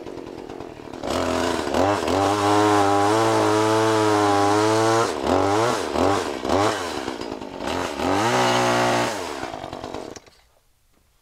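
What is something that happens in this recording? A chainsaw cuts through a log.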